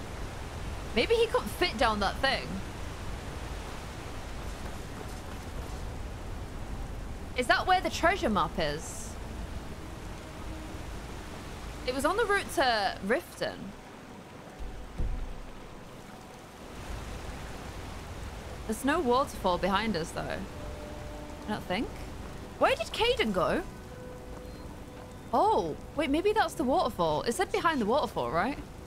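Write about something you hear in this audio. A young woman talks with animation into a close microphone, in bursts.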